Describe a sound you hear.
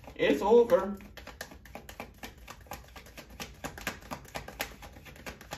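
A deck of playing cards is shuffled with quick, rapid flicks.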